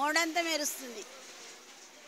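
An elderly woman speaks into a microphone close by.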